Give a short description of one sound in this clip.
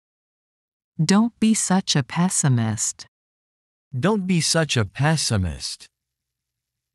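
A woman speaks a short phrase slowly and clearly, close to a microphone.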